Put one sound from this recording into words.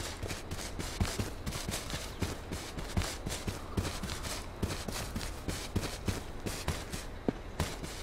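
Footsteps swish through tall grass at a steady walking pace.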